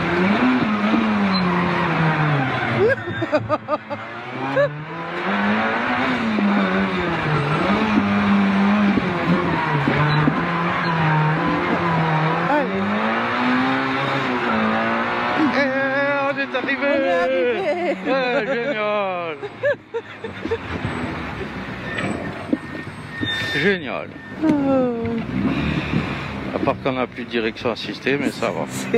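A car engine revs hard, rising and falling as gears change.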